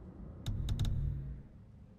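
Short soft clicks sound as menu items are selected.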